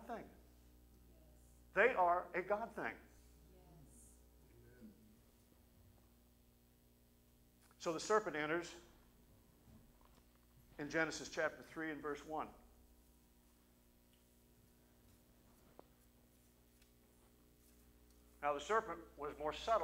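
A middle-aged man speaks slowly into a microphone, with long pauses, in a large hall.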